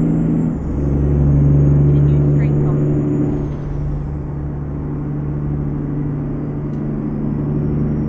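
A truck engine drones steadily, shifting pitch as gears change.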